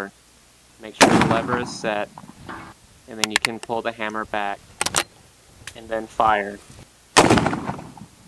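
A rifle fires loud shots outdoors.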